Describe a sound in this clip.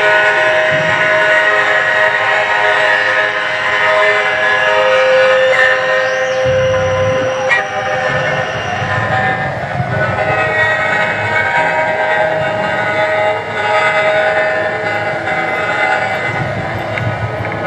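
A brass band plays a lively tune outdoors.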